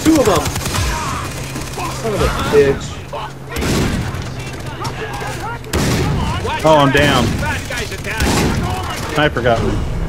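Guns fire in short, loud bursts.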